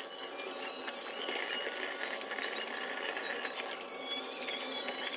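Tap water runs and splashes steadily into a bowl.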